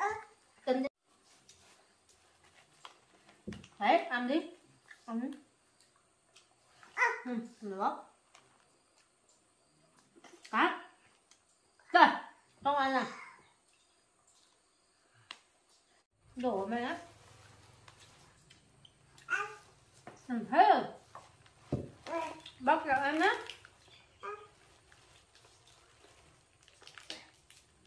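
A young woman talks gently and playfully to a baby close by.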